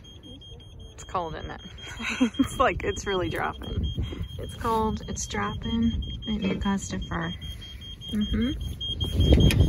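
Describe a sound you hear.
A young girl speaks calmly, close by.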